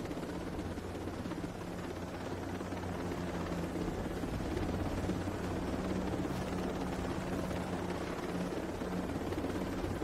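A helicopter's rotor thumps steadily and loudly overhead.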